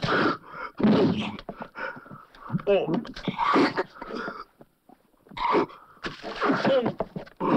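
Punches thud against a body.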